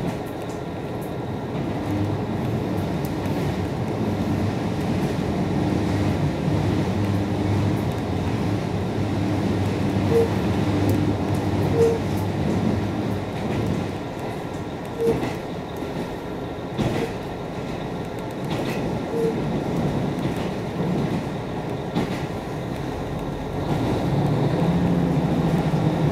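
Waves break and wash onto a shore.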